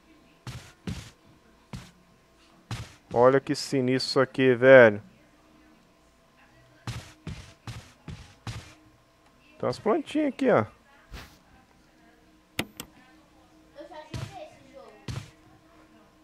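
Footsteps thud on a floor.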